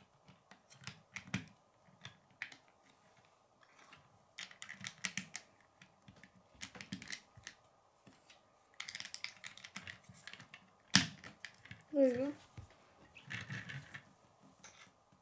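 Plastic toy bricks click and clatter as they are pressed and handled.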